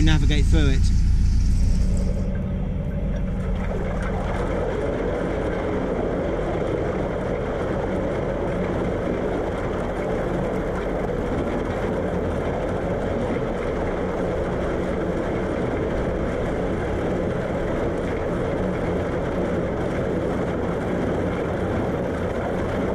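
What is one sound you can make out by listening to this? A boat's engine chugs steadily.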